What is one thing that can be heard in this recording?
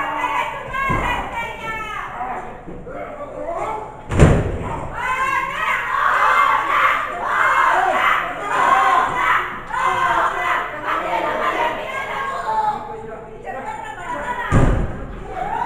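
A wrestler's body slams onto the ring mat with a heavy thud.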